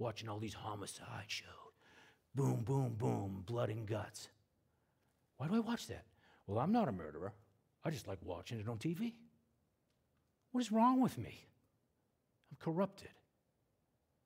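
A man lectures with animation through a microphone.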